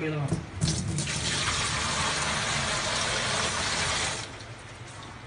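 Water pours and splashes into a plastic tank.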